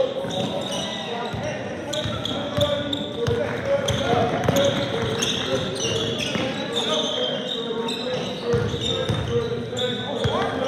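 Young men call out in a large echoing gym.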